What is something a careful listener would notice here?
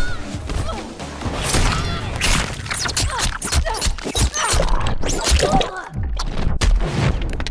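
Heavy punches and kicks land with loud thuds and cracks.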